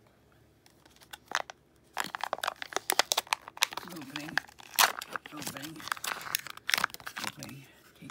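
A plastic blister pack crinkles and crackles in hands.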